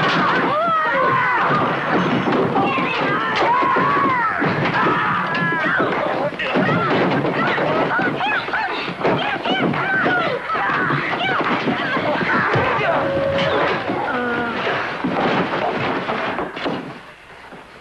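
A woman screams and cries out in struggle.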